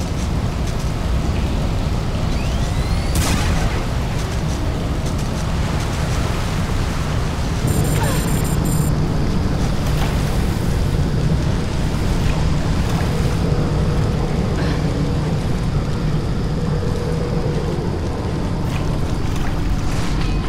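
Water splashes and sloshes as someone wades through it.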